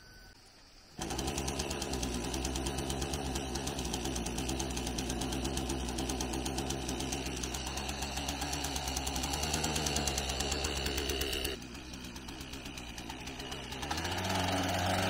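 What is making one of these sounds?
A small petrol engine starts with a jolt and runs with a steady buzz.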